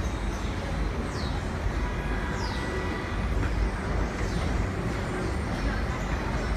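Train wheels squeal on rails now and then.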